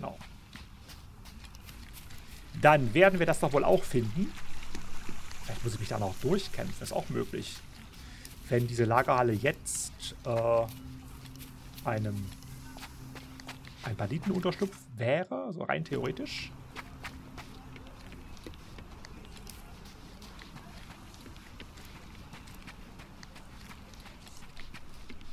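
Footsteps run quickly over stone and gravel.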